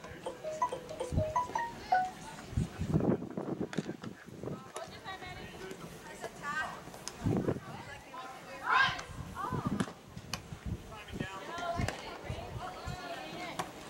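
Spectators talk and call out outdoors at a distance.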